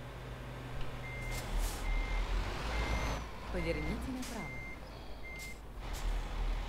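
A truck's turn signal ticks at an even pace.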